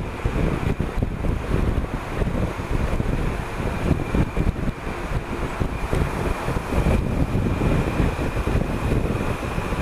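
Wind rushes and buffets loudly past a moving motorcycle.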